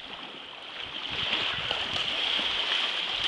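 A boy splashes through shallow water.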